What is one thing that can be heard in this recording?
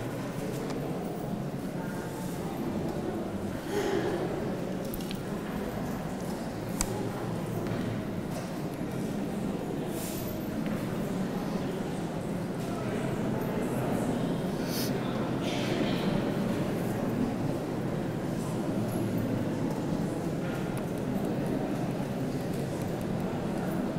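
A man speaks steadily through a microphone in a large echoing room.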